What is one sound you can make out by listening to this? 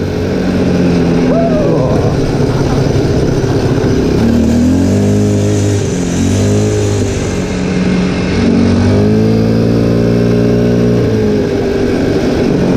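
A quad bike engine hums and revs up and down.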